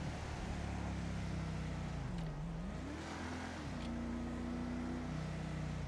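A car engine hums steadily and rises and falls in pitch as the car speeds up and shifts gears.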